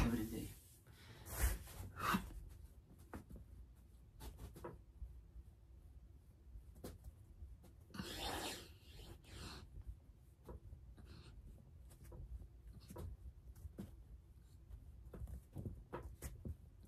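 Soft thumps sound as a person exercises on a mat.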